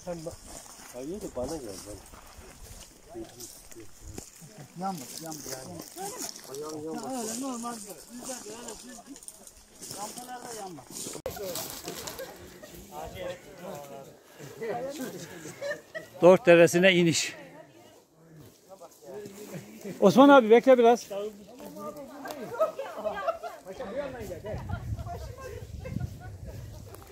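Men and women talk and call out nearby, outdoors.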